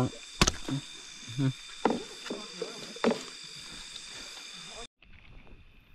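Fish flap and thump against a hard hull.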